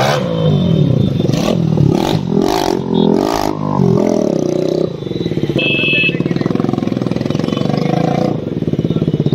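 A motorcycle engine revs loudly.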